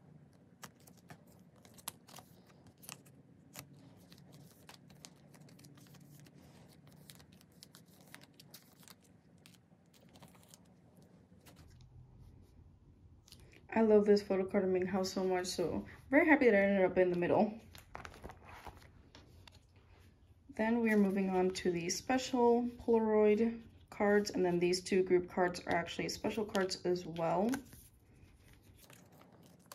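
Plastic sleeves crinkle and cards click softly as they are handled.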